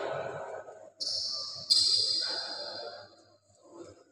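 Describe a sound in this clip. Sports shoes squeak on an indoor court floor.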